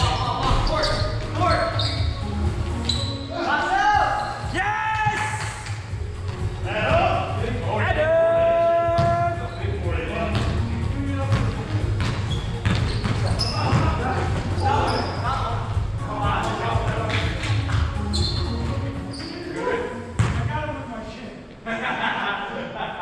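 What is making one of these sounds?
Young men call out to each other from across an echoing hall.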